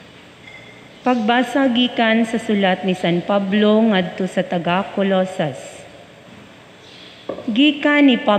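A young woman reads out clearly through a microphone in an echoing hall.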